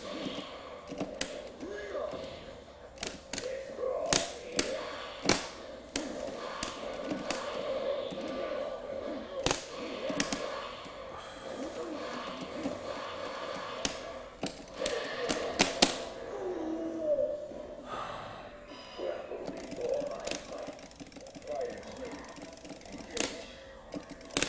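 Video game music plays steadily over a speaker.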